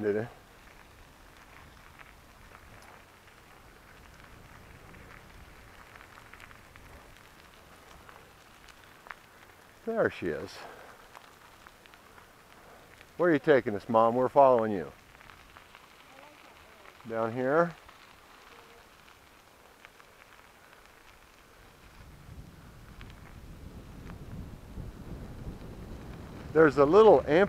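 Bicycle tyres crunch over gravel.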